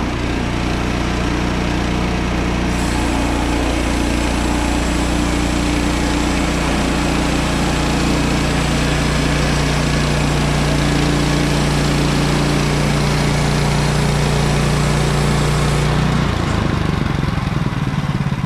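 A gas engine on a bandsaw sawmill runs under load.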